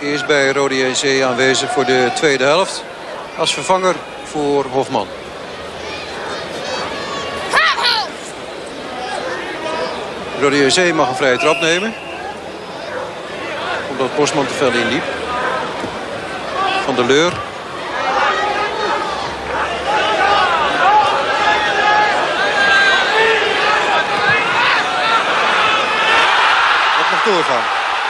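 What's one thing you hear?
A large crowd murmurs and then roars loudly in a stadium.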